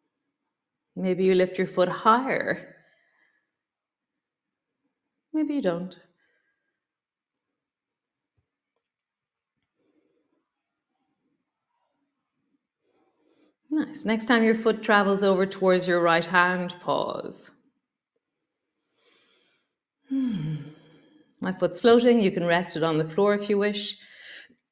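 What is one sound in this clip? A woman speaks calmly and clearly into a close microphone, giving instructions in pauses.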